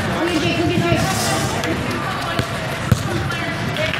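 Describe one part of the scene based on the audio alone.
A soccer ball thumps as it is kicked.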